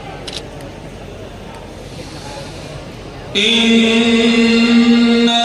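An elderly man chants in a long, held voice through a microphone and loudspeakers.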